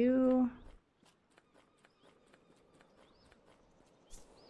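Quick footsteps patter softly on sand.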